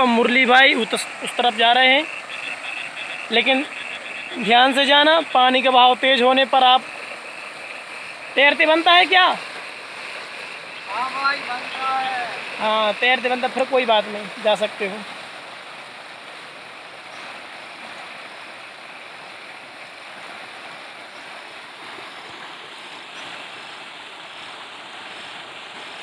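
Floodwater rushes and churns steadily outdoors.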